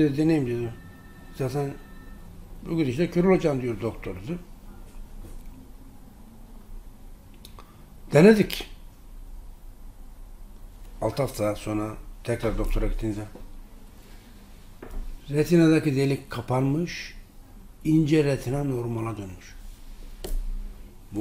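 A middle-aged man speaks calmly and with emphasis into a nearby microphone, with short pauses.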